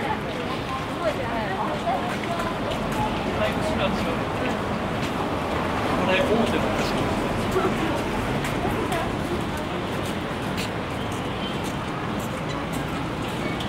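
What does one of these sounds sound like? Traffic rumbles steadily along a city street outdoors.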